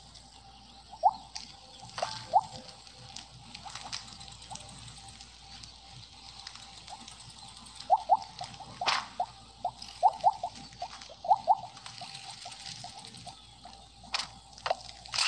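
Short bright game blips chime again and again.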